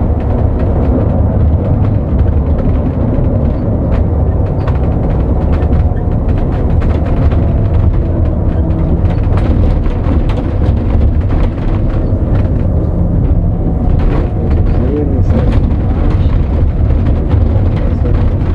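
Loose parts of the bus rattle and click.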